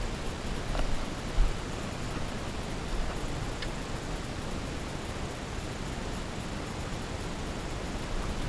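Wind rushes steadily across a microphone outdoors.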